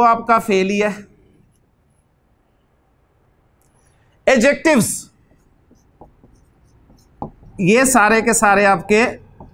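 An elderly man speaks calmly and clearly, close by, in short phrases with pauses.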